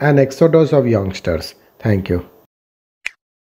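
A man speaks loudly and with animation into microphones.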